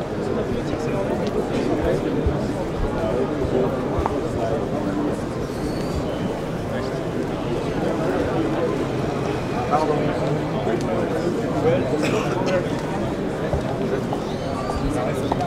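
A crowd of people chatters throughout a large echoing hall.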